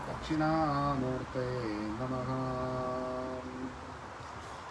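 A man chants in a long, sustained voice close by.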